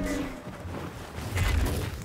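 A lightsaber hums and swishes.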